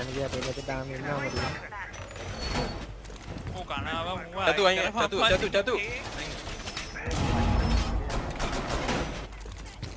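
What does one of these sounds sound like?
Heavy metal panels clank and slam into place.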